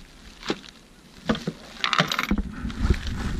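A plastic case lid clicks and knocks.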